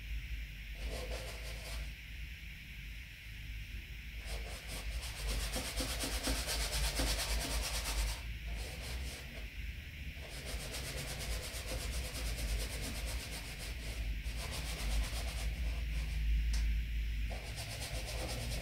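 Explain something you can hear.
A paintbrush scrubs and swishes across a canvas.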